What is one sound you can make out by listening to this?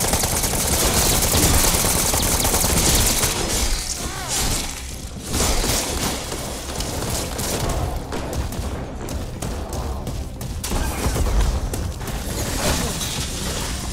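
A chainsaw roars and revs while cutting through zombies.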